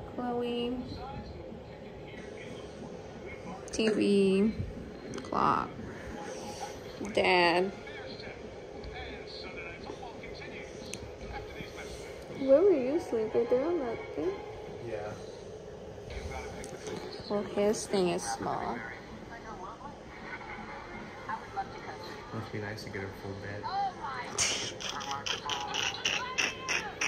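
A television plays in the room.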